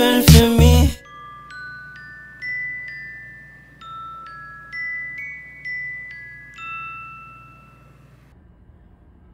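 A phone alarm chimes a bright melody.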